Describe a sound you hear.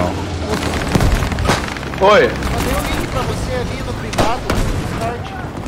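A shotgun fires loud, booming shots.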